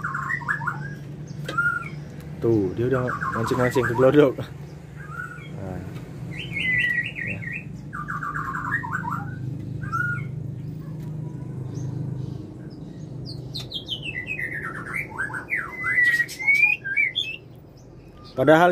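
Small birds chirp and trill in quick bursts close by.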